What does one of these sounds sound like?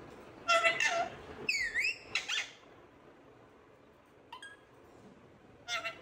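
A parrot squawks and screeches loudly close by.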